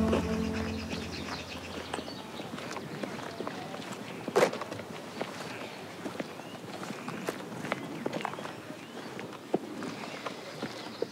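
Footsteps walk on pavement outdoors.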